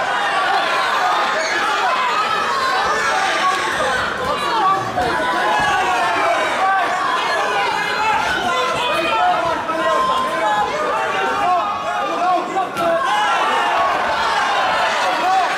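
Gloved punches and kicks thud against bodies.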